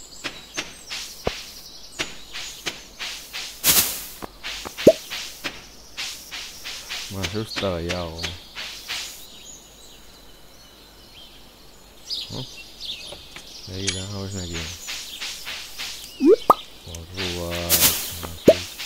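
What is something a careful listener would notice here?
A short bright pop sounds as an item is picked up.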